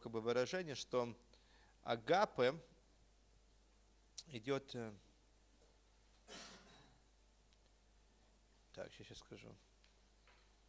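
A middle-aged man speaks slowly into a microphone, with long pauses.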